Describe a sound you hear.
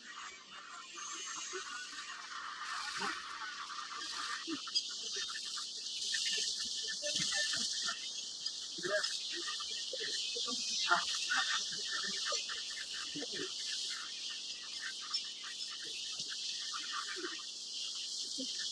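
Wildebeest splash through a river.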